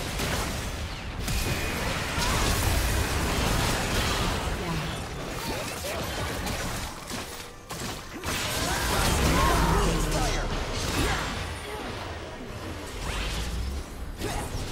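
Magic spells and weapon hits crackle and burst in a fast battle.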